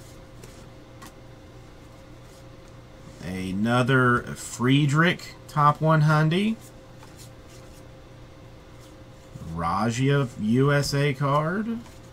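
Trading cards rustle and slide softly as they are handled.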